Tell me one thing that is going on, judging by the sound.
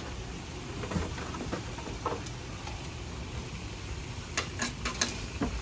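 Paper wrappers rustle and crinkle.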